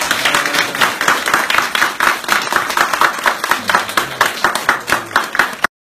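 An audience claps and applauds steadily.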